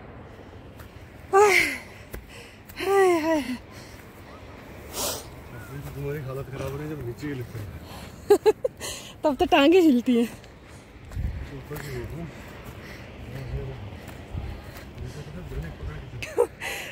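Footsteps swish and crunch through dry grass.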